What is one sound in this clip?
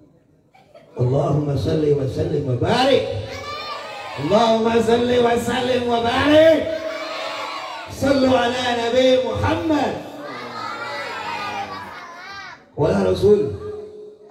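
A young man sings loudly through a microphone with a held, wavering melody.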